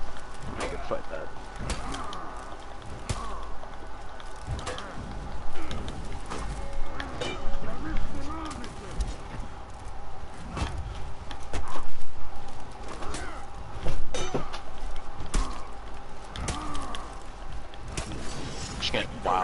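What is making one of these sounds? Metal weapons clash and clang repeatedly.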